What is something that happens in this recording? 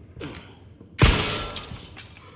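A gunshot bangs loudly and echoes.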